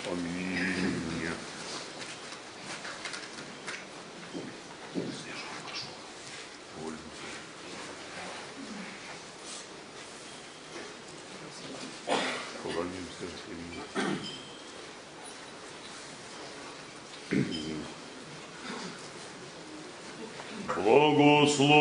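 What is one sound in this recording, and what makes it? A crowd murmurs and shuffles quietly in an echoing hall.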